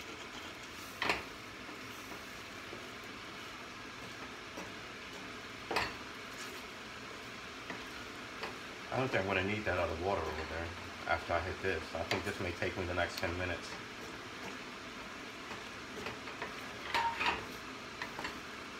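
A wooden spatula scrapes and knocks against a metal pan.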